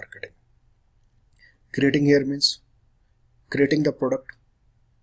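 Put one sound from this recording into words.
A young man speaks calmly through a computer microphone.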